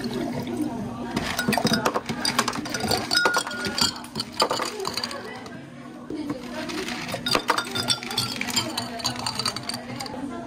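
Ice cubes clatter into glass jars.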